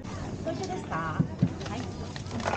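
A box knocks down on a counter.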